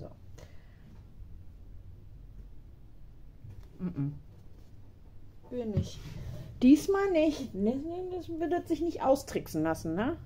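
A small plastic bottle is handled and set down on a table with a light tap.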